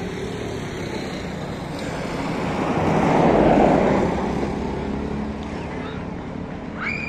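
A motorcycle passes by, its engine growing louder and then fading.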